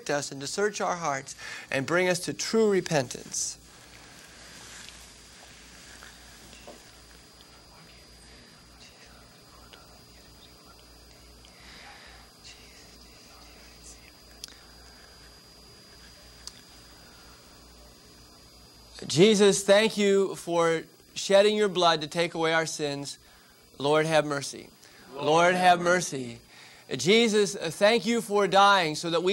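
A bearded man speaks calmly into a nearby microphone.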